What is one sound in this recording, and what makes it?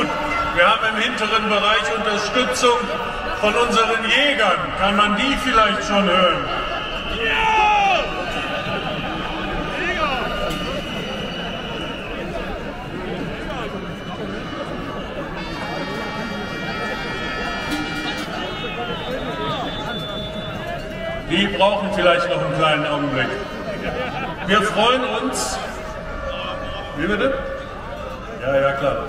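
A man speaks loudly through loudspeakers outdoors.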